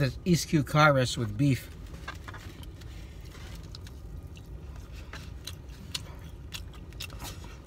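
A plastic fork scrapes and clicks in a foam food container.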